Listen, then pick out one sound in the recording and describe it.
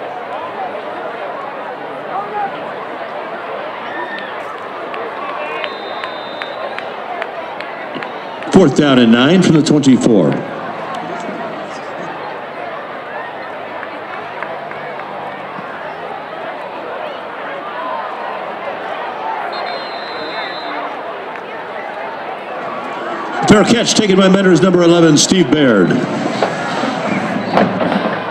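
A large outdoor crowd murmurs steadily in the distance.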